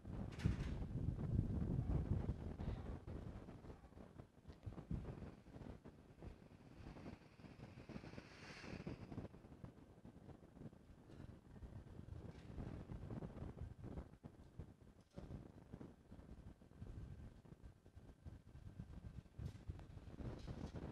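Flux sizzles softly under a hot soldering iron.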